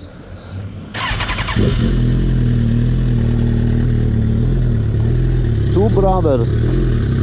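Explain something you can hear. A motorcycle engine starts and idles with a steady, deep rumble.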